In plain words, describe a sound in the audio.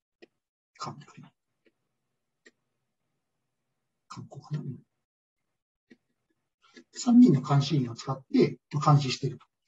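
A man speaks calmly through a microphone, in short bursts with pauses.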